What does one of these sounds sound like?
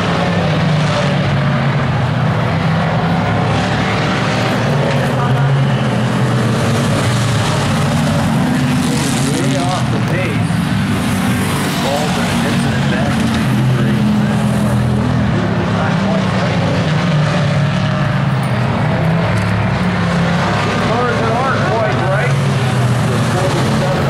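Stock car engines roar as the cars race around an oval track outdoors.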